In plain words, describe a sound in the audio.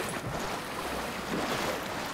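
Footsteps slosh and splash through water.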